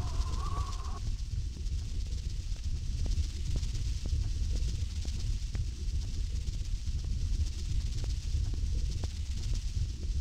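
Molten lava rumbles with a deep, steady drone.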